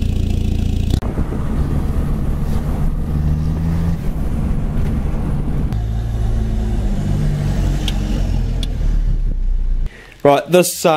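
A car engine hums steadily while driving on a road.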